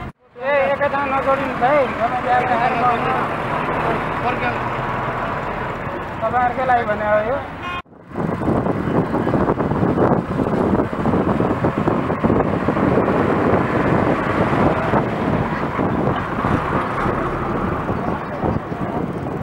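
Motorcycle engines buzz along a busy road.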